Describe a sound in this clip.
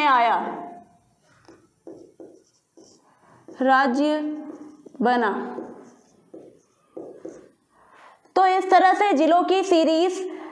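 A young woman speaks clearly and with animation nearby.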